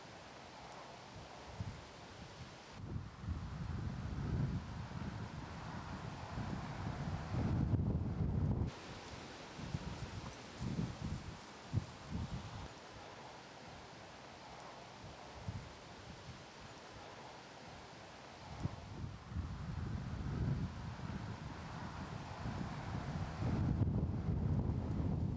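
Wind buffets the microphone outdoors in gusts.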